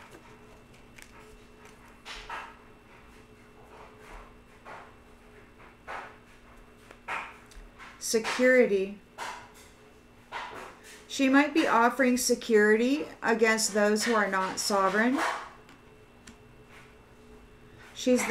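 Cards shuffle and tap in a woman's hands.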